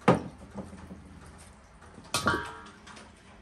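Hands knead and slap food in a basin.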